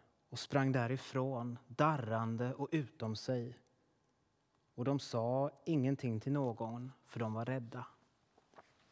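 A man speaks calmly into a microphone in a reverberant hall.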